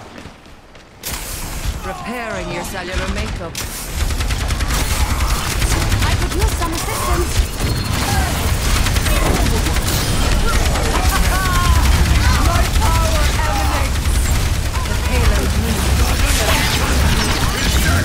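Guns fire in rapid bursts amid crackling energy blasts.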